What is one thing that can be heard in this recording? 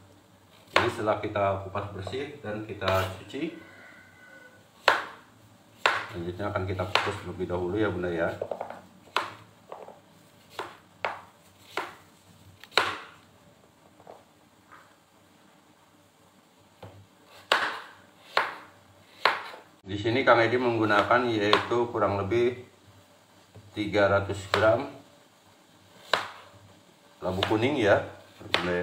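A knife chops through firm vegetable pieces and taps on a cutting board.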